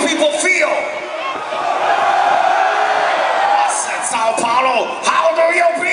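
A rock band plays loudly through speakers.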